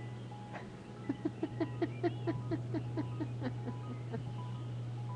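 A woman laughs in short bursts.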